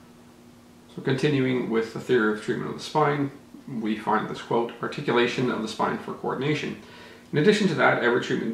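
A man talks calmly, close to the microphone.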